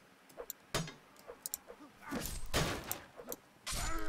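Metal weapons clash and thud against wooden shields.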